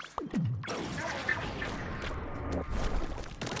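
Ink splatters wetly across the ground.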